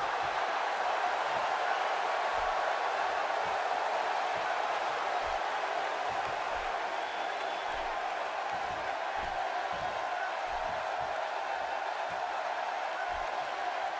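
A large arena crowd roars and cheers steadily.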